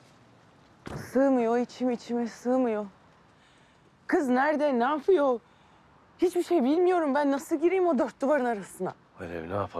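A young woman speaks tensely up close.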